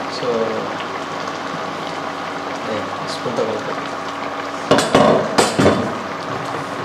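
A thick stew bubbles and plops as it simmers.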